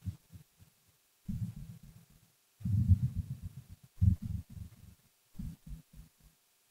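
A young man talks into a headset microphone in short bursts.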